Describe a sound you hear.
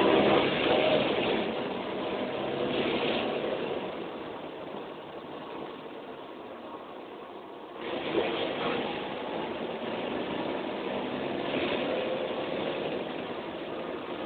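A bus engine hums and rattles steadily while the bus drives along.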